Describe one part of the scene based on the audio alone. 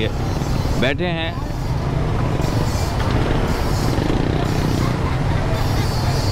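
Motorcycle and rickshaw engines rumble and idle close by.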